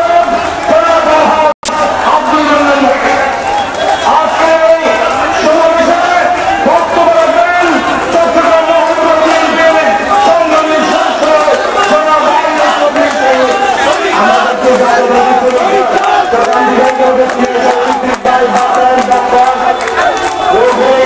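A large crowd of men chants slogans loudly in unison outdoors.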